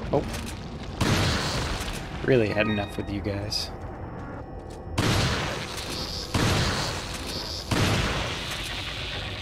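A shotgun fires loud blasts that echo.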